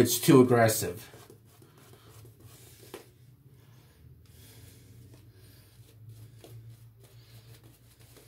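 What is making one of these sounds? A shaving brush swishes and scrubs lather on a face.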